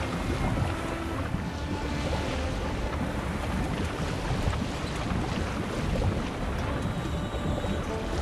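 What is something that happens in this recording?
Wind blows strongly over the open sea.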